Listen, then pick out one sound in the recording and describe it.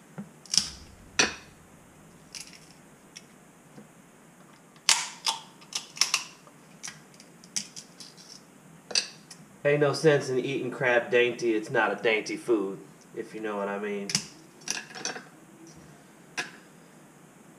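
A fork clinks and scrapes on a plate.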